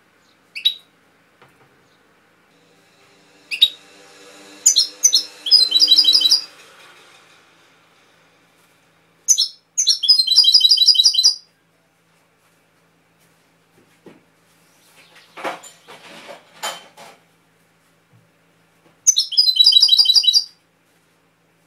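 A small songbird sings close by in short bursts of bright chirps and trills.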